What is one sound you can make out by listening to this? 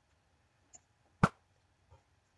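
An arrow whooshes from a bow.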